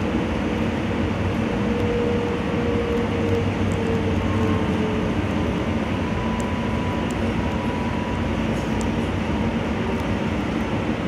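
Steel wheels squeal faintly on curving rails.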